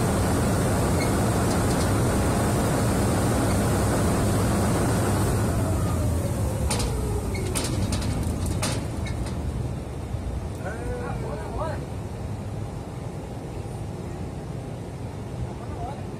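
Heavy machinery rumbles loudly and steadily outdoors, then quietens.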